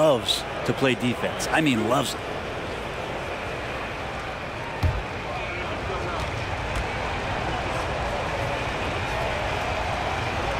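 A large arena crowd murmurs steadily.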